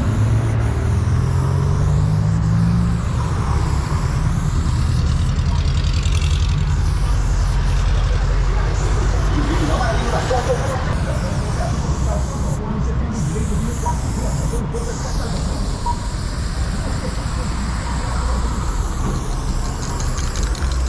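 A spray can hisses in short bursts.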